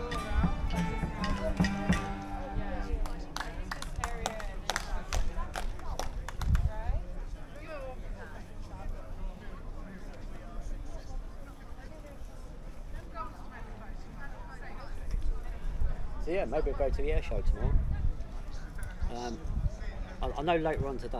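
A crowd of people chat outdoors at a distance.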